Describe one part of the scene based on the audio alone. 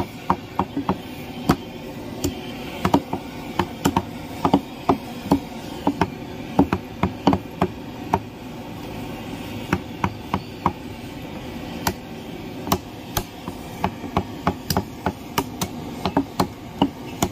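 A cleaver chops through meat and bone on a wooden block with sharp, repeated thuds.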